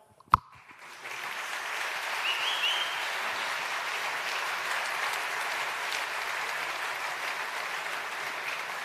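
A large crowd applauds in an echoing hall.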